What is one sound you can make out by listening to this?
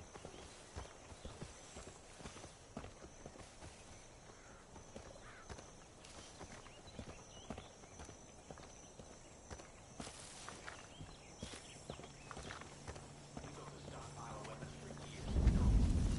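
Footsteps crunch over rock and gravel.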